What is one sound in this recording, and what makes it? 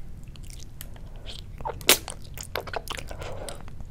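A young woman chews and slurps raw fish wetly, close to a microphone.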